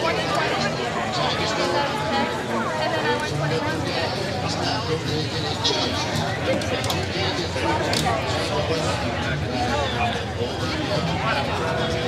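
A live band plays amplified music outdoors through loudspeakers.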